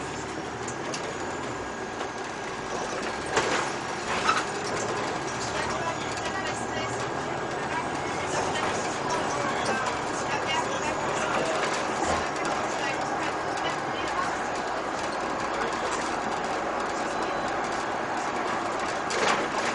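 A city bus drives along a street.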